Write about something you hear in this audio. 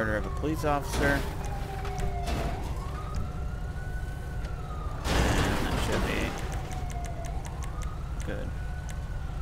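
A police siren wails nearby, slowly rising and falling.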